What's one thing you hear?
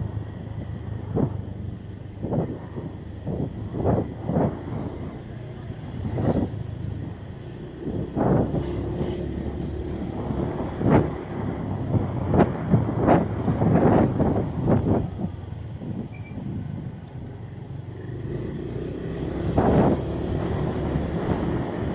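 Wind buffets loudly past.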